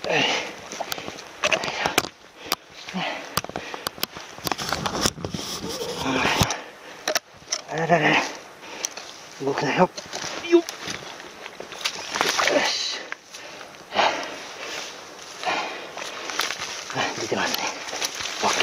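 A carcass scrapes and rustles through dry leaves as it is dragged.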